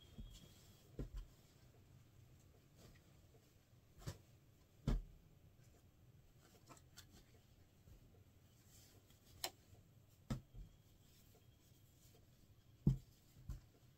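Cloth thumps lightly as it is dropped onto a surface.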